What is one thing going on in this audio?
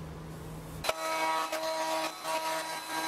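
A router whines steadily as it cuts wood.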